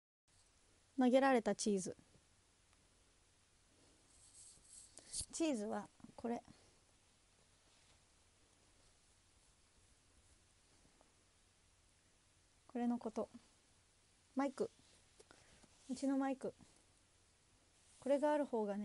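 A young woman speaks softly and close by, through a microphone, in short bursts.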